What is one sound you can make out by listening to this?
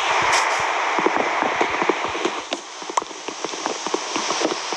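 Rapid knocking taps strike wood.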